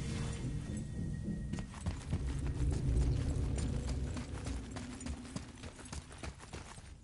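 Heavy footsteps run quickly over stone.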